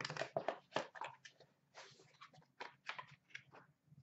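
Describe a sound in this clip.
A cardboard box flap is pulled open.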